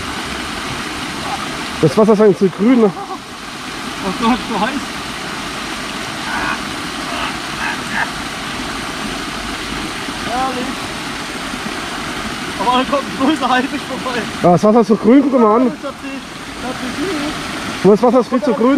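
A fountain splashes steadily into a pool outdoors.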